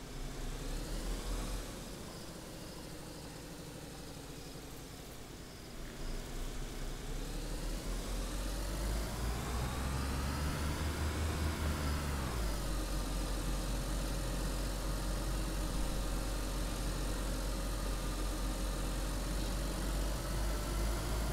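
A car engine idles and then revs up as the car speeds up.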